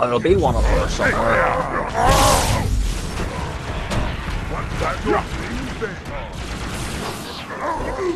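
An energy sword swings and slashes with a humming whoosh.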